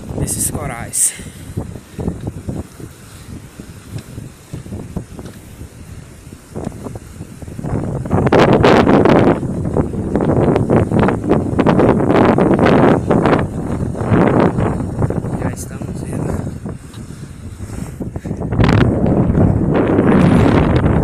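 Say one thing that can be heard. Small waves lap gently on a sandy shore.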